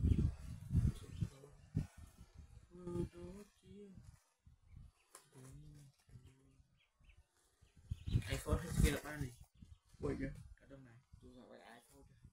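A young man speaks up close, with animation.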